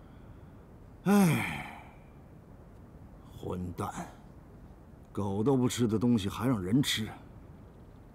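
An older man speaks in a grumbling, drowsy voice nearby.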